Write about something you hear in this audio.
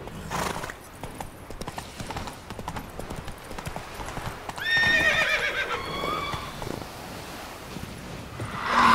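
A horse's hooves clop steadily on the ground.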